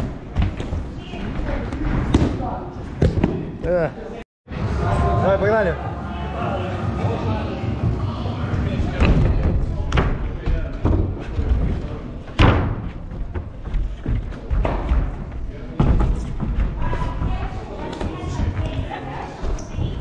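Shoes thud and slap on wooden boxes and mats as a man jumps and lands.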